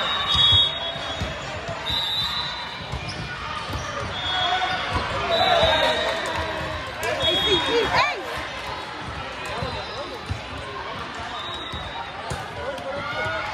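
A crowd of spectators chatters and cheers throughout.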